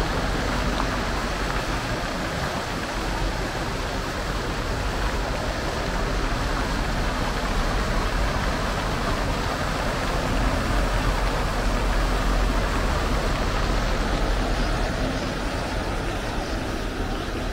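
Fountain water splashes and gushes steadily close by.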